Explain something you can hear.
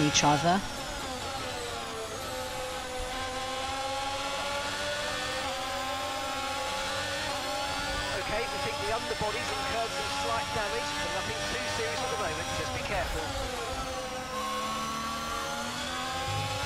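A racing car engine whines loudly, its pitch rising and falling as gears shift.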